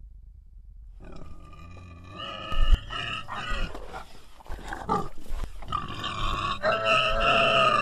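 A young man talks loudly and with animation close by.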